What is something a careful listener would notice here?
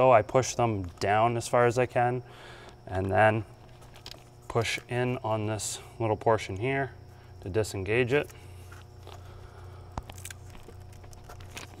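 A plastic electrical connector clicks as it is pulled apart.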